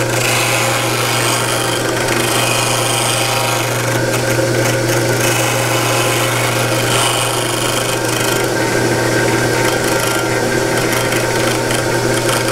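A sanding machine whirs steadily.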